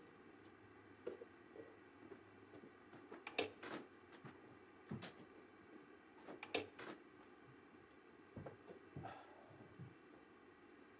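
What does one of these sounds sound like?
Dishes knock softly now and then.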